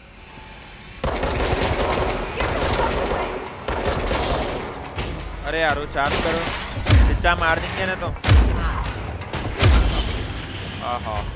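Gunshots fire rapidly in bursts.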